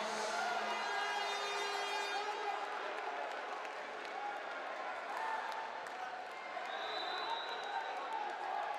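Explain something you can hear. A crowd cheers and whistles in a large echoing hall.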